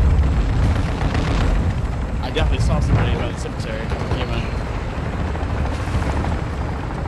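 A helicopter's rotor thumps loudly close by.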